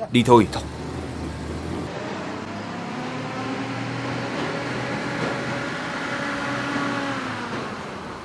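A truck engine rumbles as the truck drives closer.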